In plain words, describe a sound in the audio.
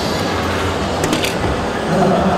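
A dart thuds into an electronic dartboard with a sharp click.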